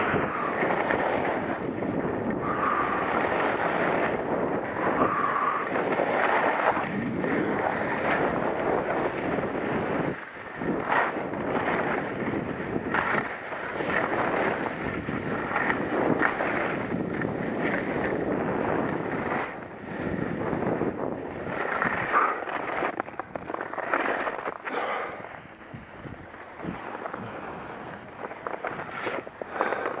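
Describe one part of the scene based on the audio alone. Wind rushes loudly past, buffeting close by.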